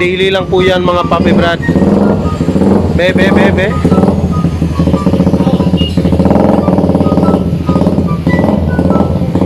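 A motorcycle engine idles with a rapid, rattling putter.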